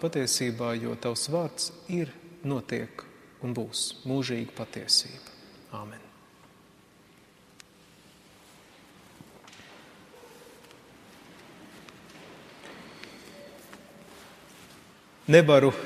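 A man preaches calmly in a large echoing hall, pausing between phrases.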